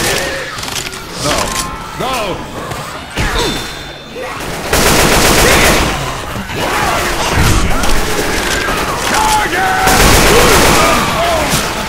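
Zombies snarl and shriek nearby.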